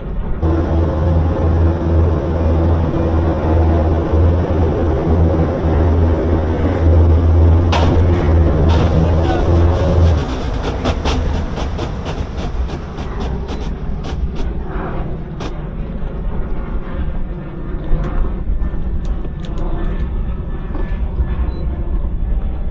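Outboard engines drone loudly at high speed.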